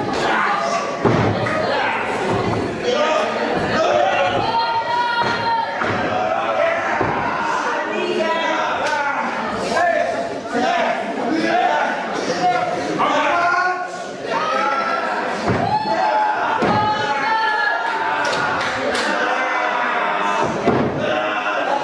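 Bodies thud heavily on a wrestling ring's mat.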